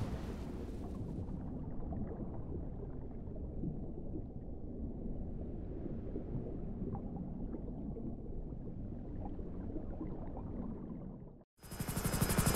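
Muffled underwater rumbling and bubbling churns steadily.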